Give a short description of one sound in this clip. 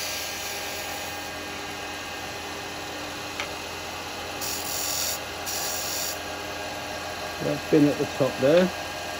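A wood lathe spins with a steady hum.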